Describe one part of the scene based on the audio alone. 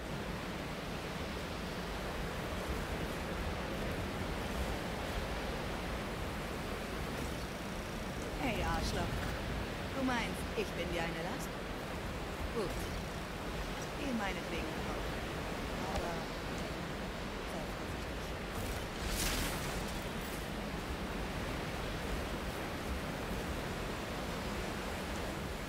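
Footsteps crunch on snow and stone.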